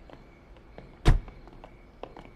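A car door shuts with a heavy thud.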